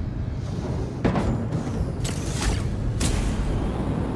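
A laser blast zaps and crackles loudly.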